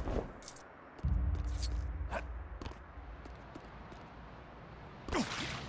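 A low rumbling whoosh plays as a figure flies down.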